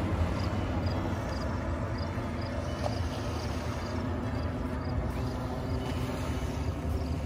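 Small waves wash gently onto a pebble shore.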